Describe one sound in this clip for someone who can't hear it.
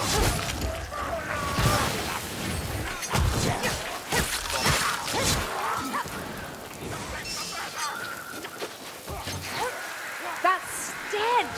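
Beastly creatures snarl and squeal.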